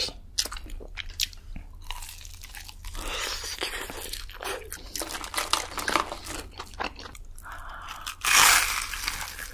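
A young woman bites into crunchy fried chicken with a loud crunch.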